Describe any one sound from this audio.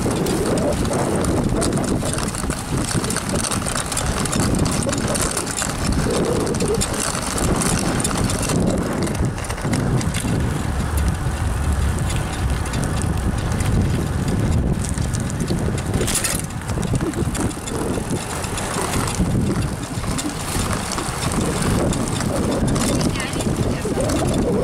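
Bicycle tyres roll along a paved path.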